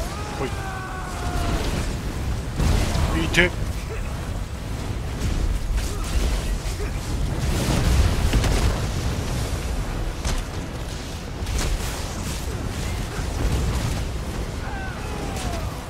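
Fiery spell blasts and explosions boom and crackle continuously.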